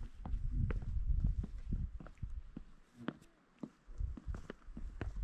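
Footsteps crunch on stone steps.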